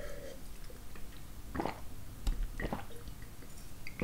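A man sips wine with soft slurps close to a microphone.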